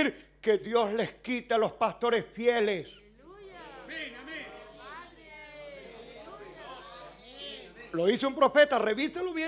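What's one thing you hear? A middle-aged man preaches with animation through a microphone in an echoing room.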